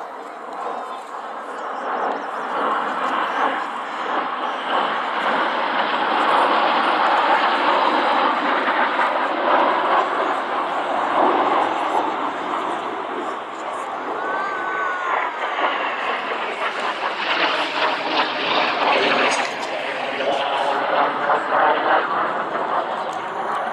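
Jet engines roar overhead as a formation of aircraft flies past.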